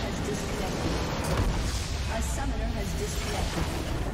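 A large crystal structure bursts with a deep, rumbling boom.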